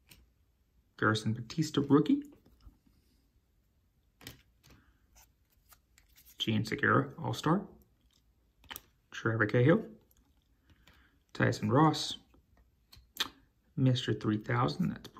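Trading cards slide and flick against each other in hands.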